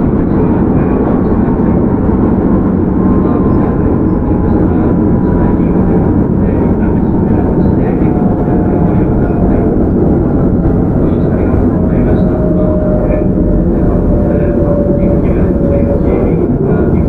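A train's motor whines, its pitch slowly falling.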